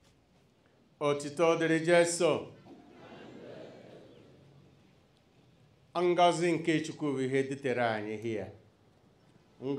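A man speaks loudly and slowly into a microphone, heard through loudspeakers.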